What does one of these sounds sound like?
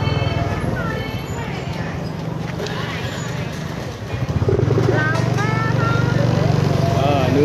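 Motorbike engines idle and putter close by.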